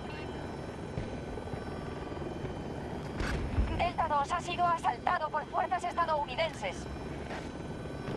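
A helicopter's rotor thrums steadily.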